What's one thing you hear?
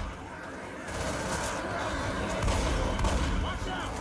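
An explosion bursts with a roaring blast.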